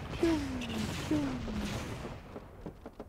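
An explosion bursts with a loud, rumbling roar.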